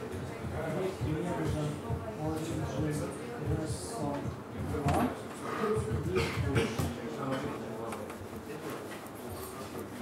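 Laptop keys click as a young man types.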